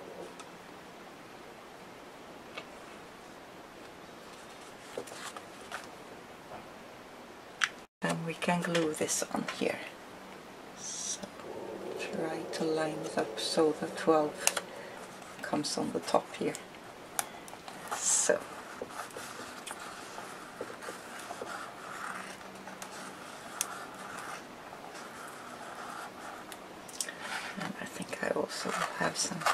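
Paper rustles and taps softly on a tabletop.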